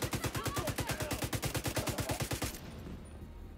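A rifle fires in a rapid burst of shots.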